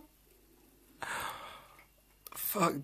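A young man chews food noisily.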